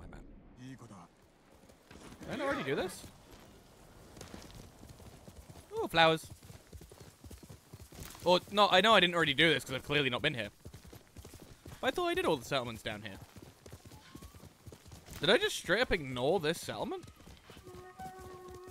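A horse gallops, hooves thudding on soft ground.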